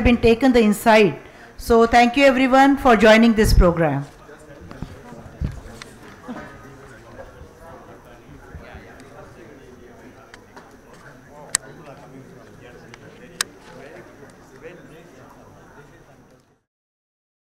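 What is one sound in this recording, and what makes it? A crowd of people chatters in a large room.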